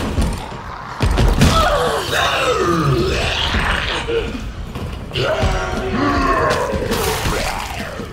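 Heavy thuds and scuffling break out in a struggle.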